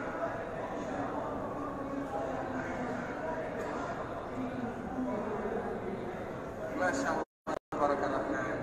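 A large crowd of men murmurs and chants together in a big echoing hall.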